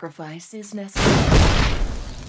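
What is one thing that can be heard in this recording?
A magical whooshing effect sounds as a spell strikes.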